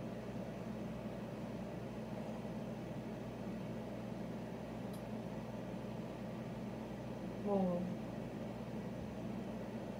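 A boy gulps down a drink.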